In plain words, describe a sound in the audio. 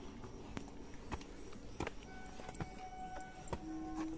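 Footsteps climb stone steps.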